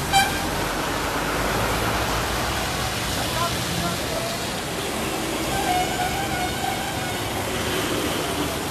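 Traffic rumbles steadily on a wet road, with tyres hissing through water.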